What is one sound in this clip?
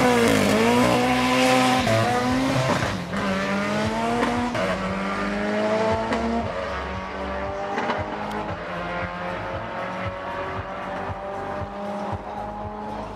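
Two cars race away, engines roaring up through the gears and fading into the distance.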